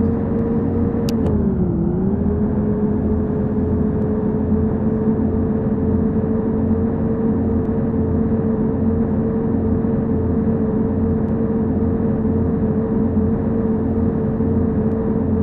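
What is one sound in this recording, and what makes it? Tyres roll steadily on a smooth road.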